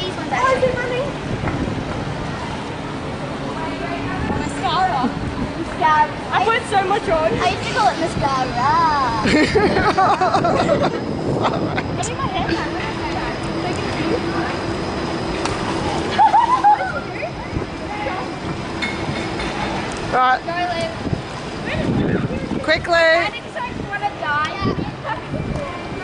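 Young girls talk and laugh excitedly close by.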